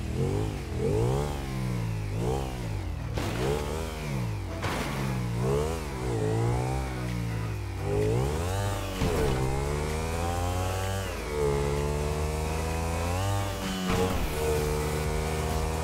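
A motorcycle engine revs up and down as it speeds along.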